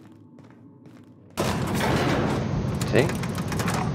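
A heavy metal lift gate clanks shut.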